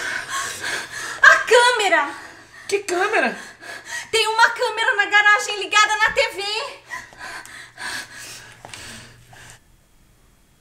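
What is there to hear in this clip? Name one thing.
A woman talks excitedly and exclaims close by.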